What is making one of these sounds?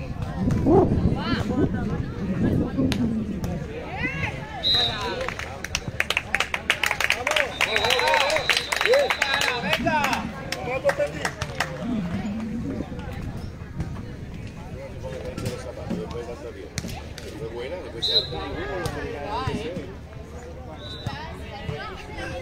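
A volleyball is struck with dull thuds.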